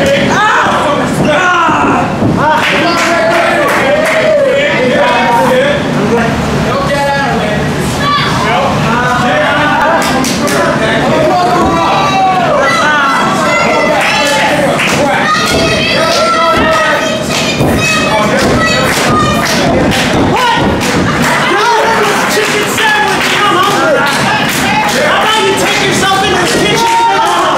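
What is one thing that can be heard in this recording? A crowd of spectators shouts and chatters in an echoing hall.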